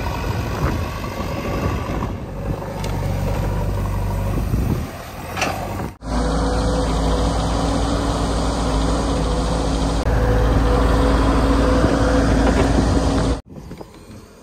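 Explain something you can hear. A diesel engine rumbles and roars as a digger works.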